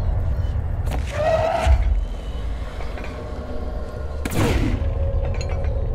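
A heavy door bursts open with a loud crash and scattering debris.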